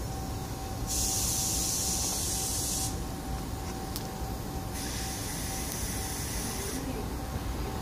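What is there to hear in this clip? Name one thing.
Train brakes hiss and squeal.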